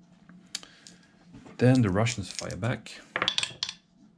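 Dice rattle and clatter in a wooden tray.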